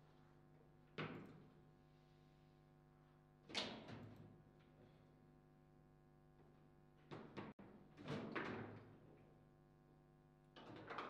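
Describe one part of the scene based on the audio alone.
Foosball rods clack and a ball knocks sharply inside a table.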